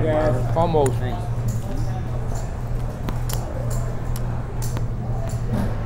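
Poker chips click together.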